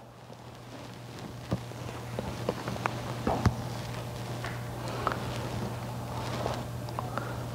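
A man chants softly into a microphone.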